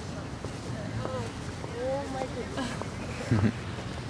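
Young women chat as they walk past.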